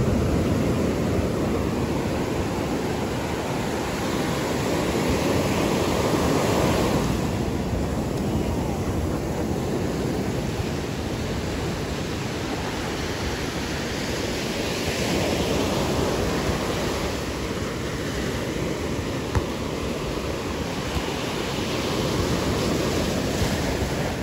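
Waves wash steadily onto the shore.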